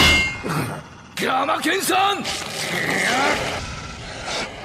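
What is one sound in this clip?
An elderly man shouts in alarm.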